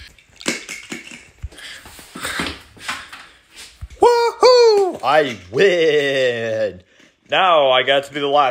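A toy car rolls across a wooden floor.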